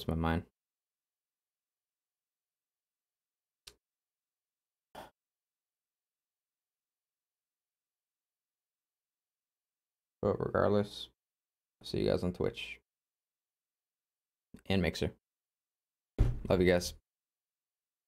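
A young man speaks close to a microphone in short bursts, with pauses between.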